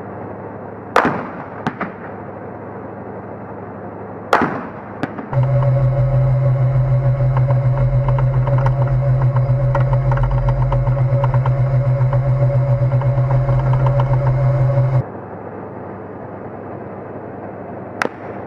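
Loud gunfire bangs echo outdoors.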